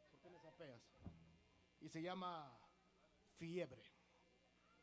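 A man sings briefly into a microphone.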